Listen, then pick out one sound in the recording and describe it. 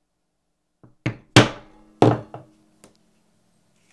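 A metal punch knocks sharply into leather on a hard block.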